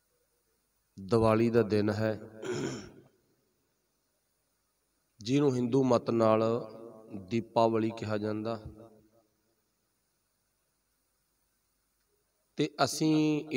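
A man speaks calmly and slowly into a microphone, with pauses.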